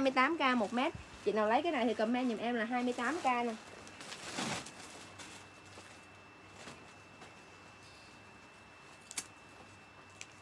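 Cloth rustles as a young woman handles fabric.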